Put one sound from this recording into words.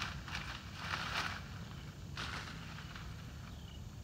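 Leafy branches rustle and swish.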